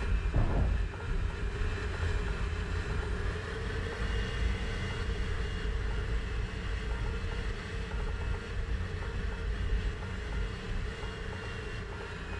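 A propeller aircraft engine drones steadily from inside the cockpit.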